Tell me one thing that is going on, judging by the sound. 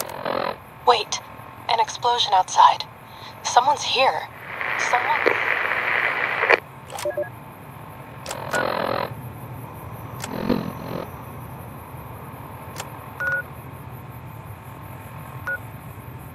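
A handheld device clicks softly as its menu pages change.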